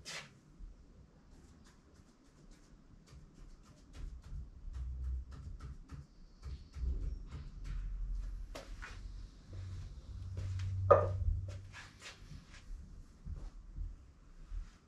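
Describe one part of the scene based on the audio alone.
A marker pen taps and scratches on a wall.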